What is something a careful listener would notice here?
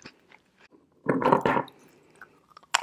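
Chalky rocks clink and scrape on a wooden board.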